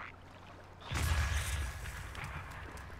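A loud magical blast booms in a video game.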